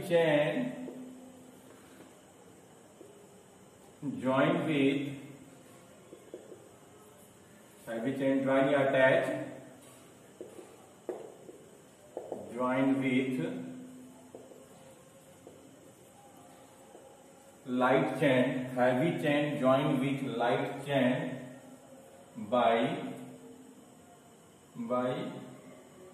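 A middle-aged man speaks calmly in short bursts with pauses, as if explaining.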